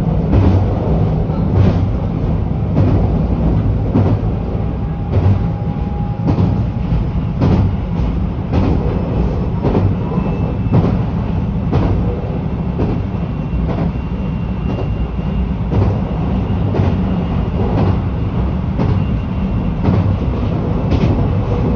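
A train rumbles along steadily at speed.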